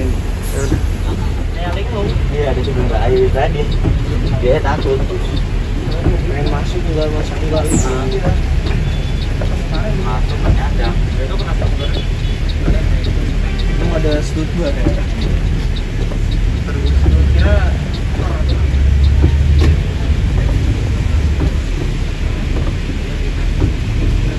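A large engine rumbles low and steadily.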